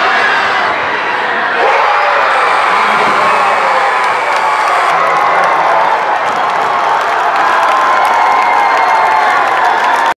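A large crowd cheers and screams loudly in an echoing gym.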